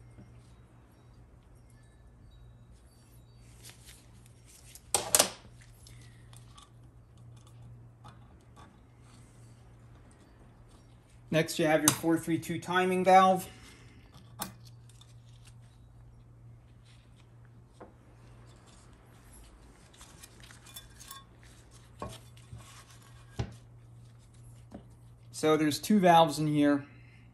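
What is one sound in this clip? Small metal parts click and clink against a hard surface.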